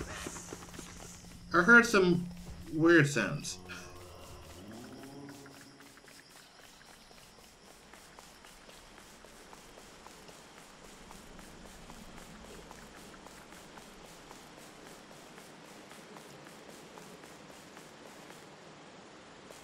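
Light footsteps patter steadily on hard ground.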